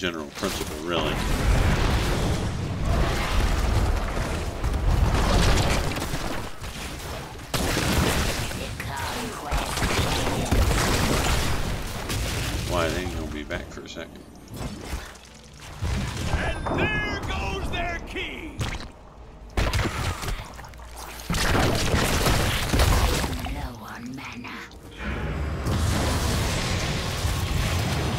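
Game spell effects zap and crackle in bursts.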